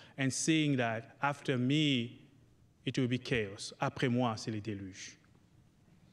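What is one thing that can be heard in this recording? A man speaks into a microphone with animation, in a large echoing hall.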